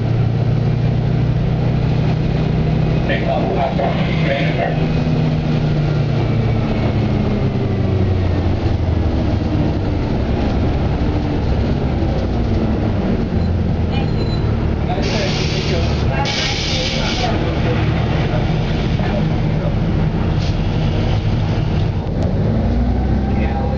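A vehicle's engine rumbles low and steady, heard from inside as it rolls along.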